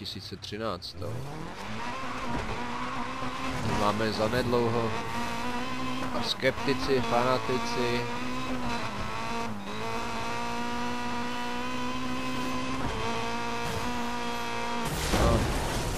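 A racing car engine roars and revs up as it speeds along.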